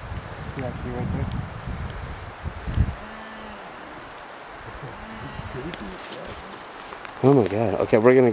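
Rain patters steadily on leaves outdoors.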